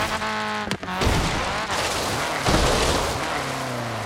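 A vehicle lands with heavy thuds on rough ground.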